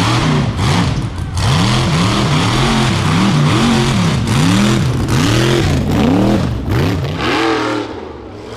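An off-road buggy engine revs loudly up close.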